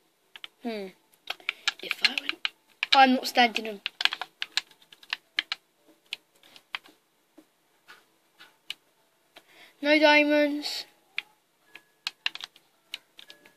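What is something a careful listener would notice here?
Game sounds of blocks being dug play through a television speaker with quick repeated taps.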